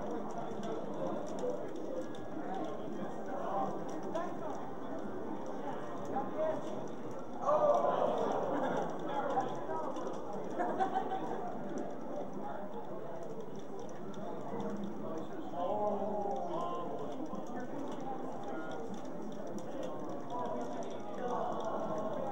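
Young men talk excitedly close to a microphone.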